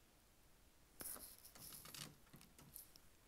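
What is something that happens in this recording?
Something bumps and rustles against a microphone close by.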